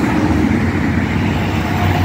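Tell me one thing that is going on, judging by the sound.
A motor scooter hums by.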